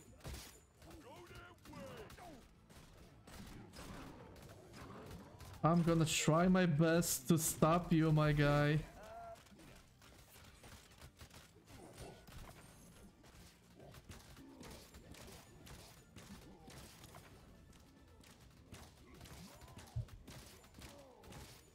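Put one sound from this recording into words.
Game sounds of weapons and spells play in bursts.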